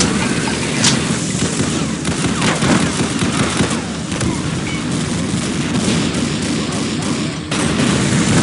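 Gunfire from a video game shotgun booms.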